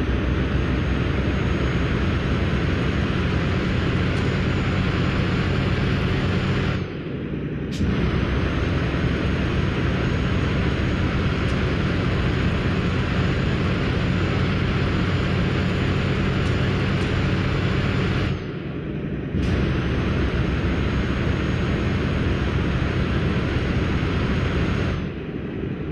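A truck engine drones steadily, dropping briefly now and then as gears change.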